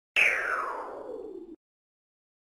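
A sweeping whoosh falls in pitch and fades.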